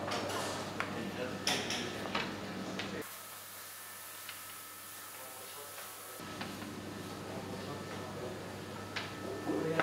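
A wooden peel scrapes across an oven floor.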